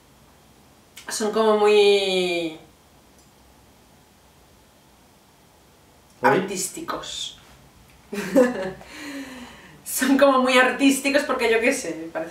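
A young woman talks cheerfully close by, in short bursts.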